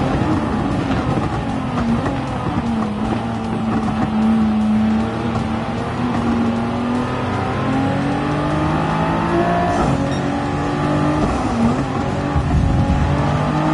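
Other racing car engines roar close by.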